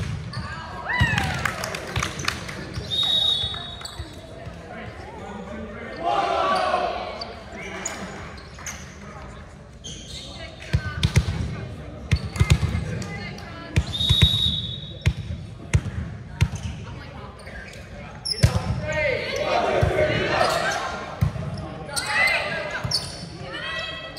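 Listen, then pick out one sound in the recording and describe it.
Young women players call out and shout to each other.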